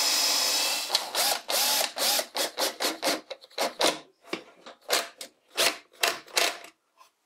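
A cordless screwdriver drives a screw in short bursts.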